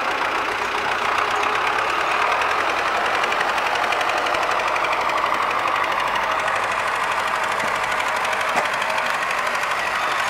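A tractor engine revs as the tractor drives off.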